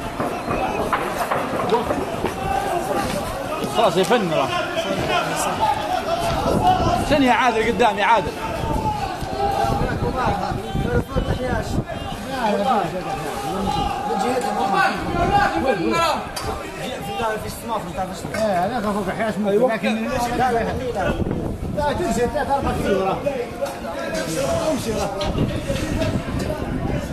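Men shout and talk excitedly close by, outdoors.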